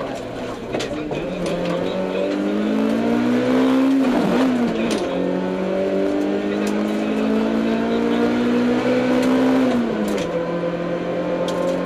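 A car engine roars loudly, revving up and dropping sharply at each gear change.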